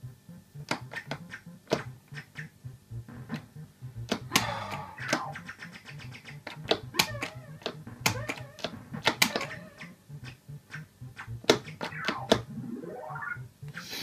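An arcade game plays electronic bleeps, jingles and rising tones.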